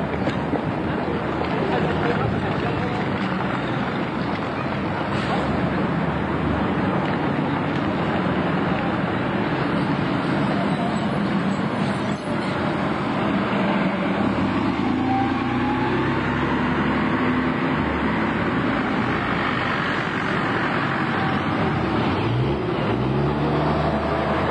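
A bus engine rumbles as a double-decker drives past close by.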